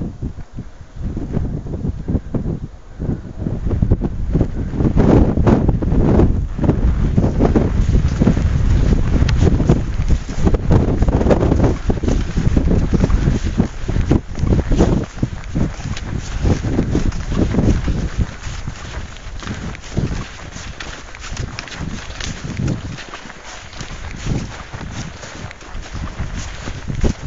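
Strong wind gusts outdoors, buffeting loudly.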